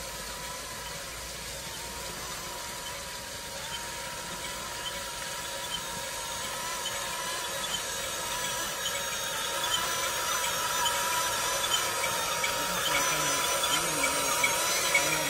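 A toy excavator's electric motor whirs steadily as its tracks roll closer and grow louder.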